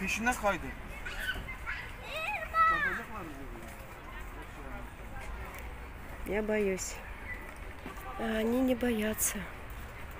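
Young children shout and call out nearby, outdoors.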